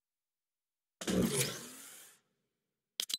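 A menu button clicks.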